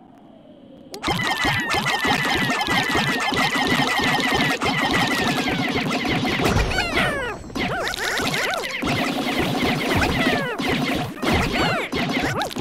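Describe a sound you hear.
Tiny cartoon creatures chirp and squeak in a busy, high chorus.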